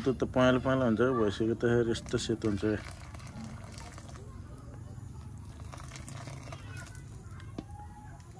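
A ladle scrapes and stirs inside a metal pan.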